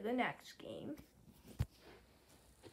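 Fingers brush and rub close against the microphone.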